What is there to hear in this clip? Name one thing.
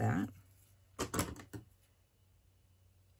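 Scissors snip through ribbon.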